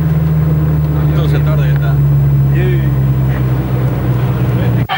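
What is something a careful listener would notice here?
People talk quietly in the distance outdoors.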